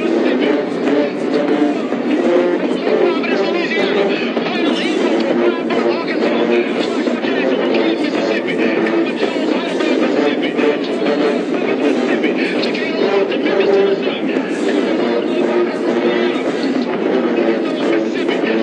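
A stadium crowd cheers and murmurs.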